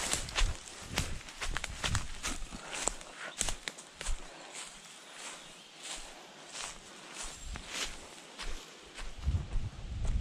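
Footsteps rustle through grass and dry leaves.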